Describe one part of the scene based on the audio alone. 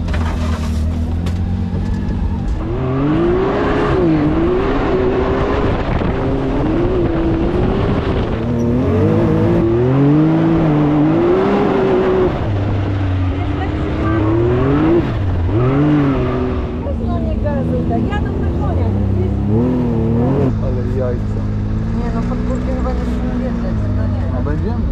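An off-road vehicle's engine roars loudly and revs up and down.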